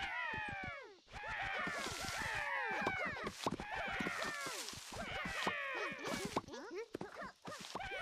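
Magic bolts zap again and again, each with a quick falling whistle.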